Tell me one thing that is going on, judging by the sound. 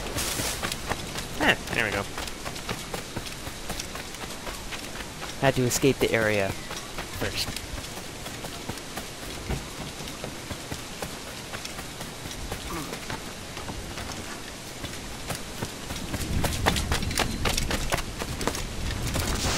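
Quick footsteps run over stone.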